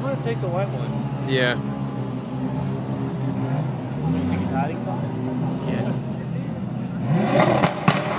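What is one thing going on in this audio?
Race car engines idle with a deep, rumbling burble.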